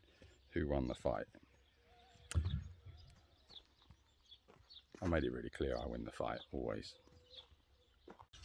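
A middle-aged man speaks calmly and quietly, close by.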